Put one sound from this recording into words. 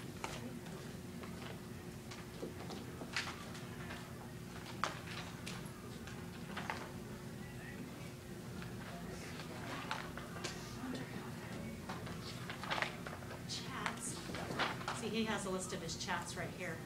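A projector fan hums steadily.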